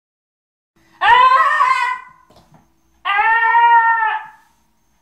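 A young woman sings two long, high notes up close.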